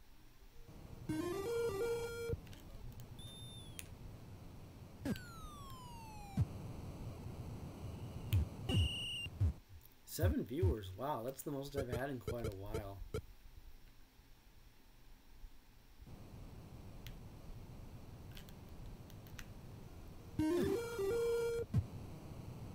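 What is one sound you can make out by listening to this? Chiptune video game sound effects beep and chime.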